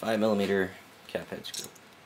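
Metal tools clink against each other.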